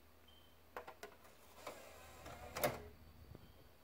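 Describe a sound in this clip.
A disc clicks and rattles as it is pushed into a game console's drive.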